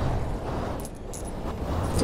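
A magic spell whooshes and sparkles.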